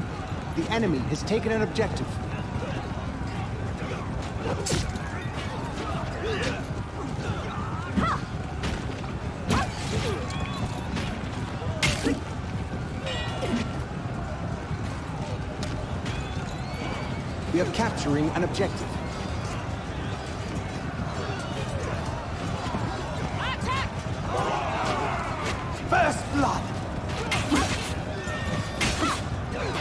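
Weapons clash and clang in a busy battle.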